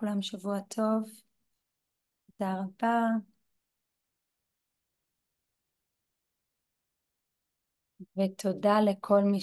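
A young woman speaks with animation over an online call, pausing between phrases.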